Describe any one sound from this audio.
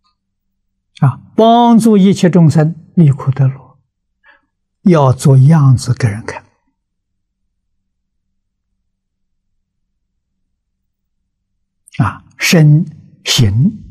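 An elderly man speaks calmly and closely into a microphone, with long pauses.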